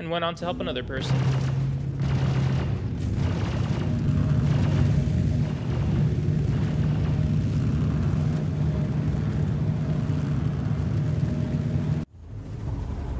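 A spacecraft engine rumbles with a deep, steady drone.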